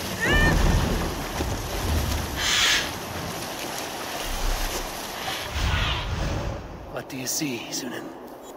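Water rushes and splashes against the hull of a moving boat.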